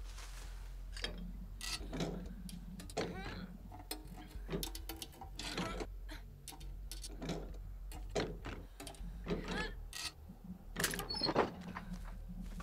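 Hands rummage and clatter through a wooden chest.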